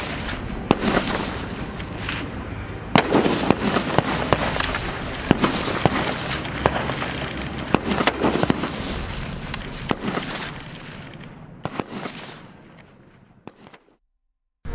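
Rifle shots ring out one after another outdoors.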